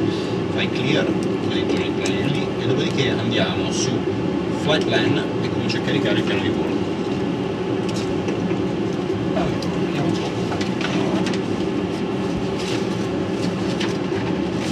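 A steady loud hum of aircraft engines and air fills a cockpit.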